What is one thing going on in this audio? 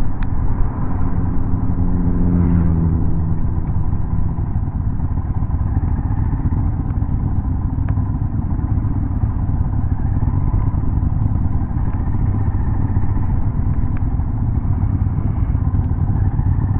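Other motorcycles rev nearby.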